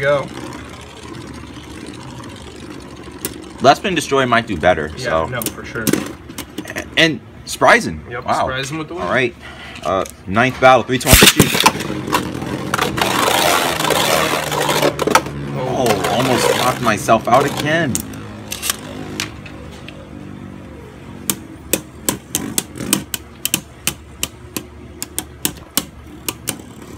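Spinning tops clack sharply against each other and a plastic rim.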